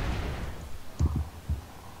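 An explosion bursts with a roar of flames.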